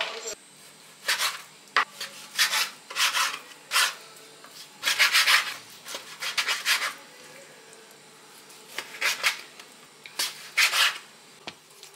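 A knife chops through meat onto a wooden board.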